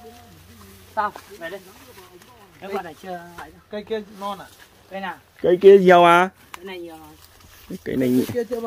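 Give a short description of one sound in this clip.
A younger man talks loudly from nearby.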